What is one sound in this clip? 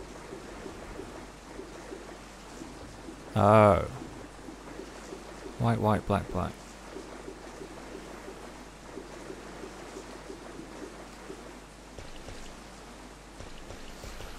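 Water splashes steadily from a fountain.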